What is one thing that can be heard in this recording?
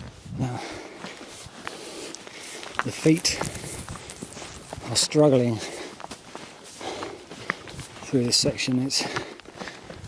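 Footsteps crunch in soft sand.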